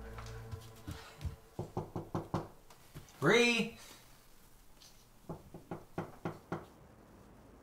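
A man knocks on a door several times.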